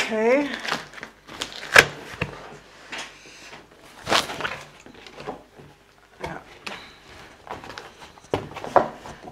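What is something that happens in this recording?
Cardboard flaps thump and rustle as a box opens.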